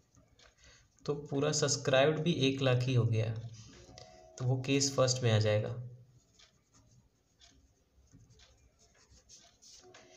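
A marker scratches softly across paper.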